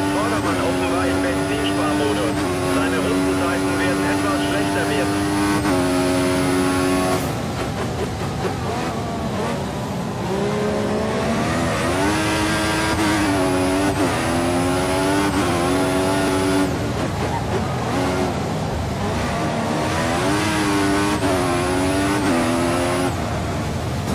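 A racing car engine screams at high revs, rising through the gears and dropping sharply when braking.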